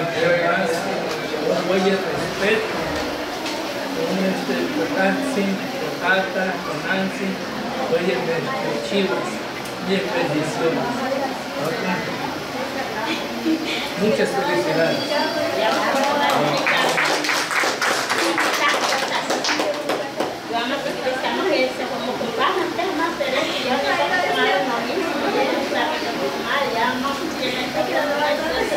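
An elderly man speaks calmly to a small group nearby.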